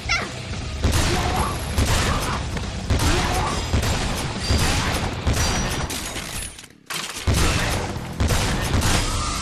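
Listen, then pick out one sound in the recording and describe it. Explosions burst with loud booms.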